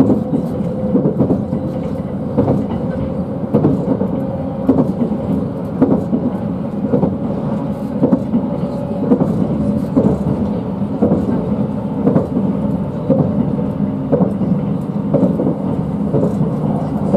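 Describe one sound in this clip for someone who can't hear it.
A train rumbles steadily along the track from inside a carriage.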